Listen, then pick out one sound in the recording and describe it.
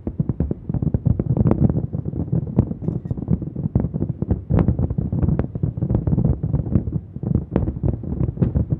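Fireworks burst in rapid booming, crackling bangs in the distance outdoors.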